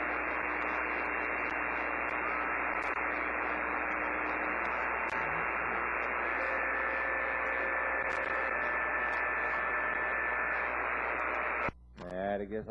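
Radio static hisses steadily from a receiver's loudspeaker.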